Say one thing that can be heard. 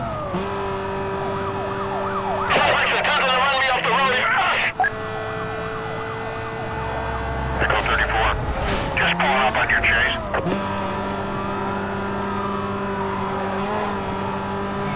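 A car engine drones steadily at high speed.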